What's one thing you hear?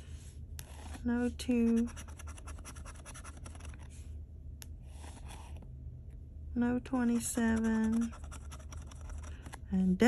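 A metal edge scratches rapidly across a card.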